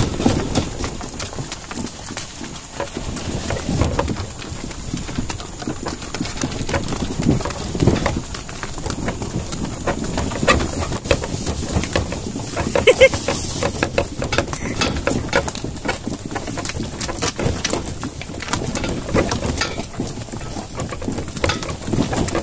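A mule's hooves thud on the dirt.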